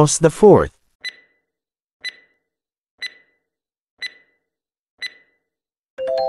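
A countdown timer beeps once every second.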